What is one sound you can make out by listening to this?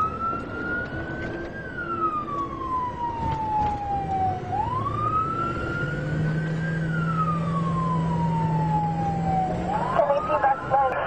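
A car drives along with a steady road rumble.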